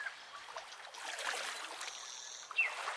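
A fish splashes in water.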